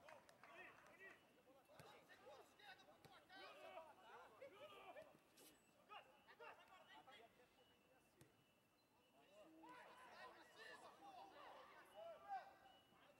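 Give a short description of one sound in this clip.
Football players shout to each other across an outdoor pitch.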